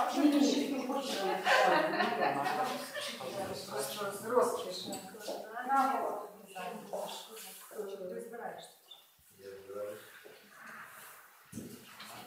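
Several adults talk with one another in a room.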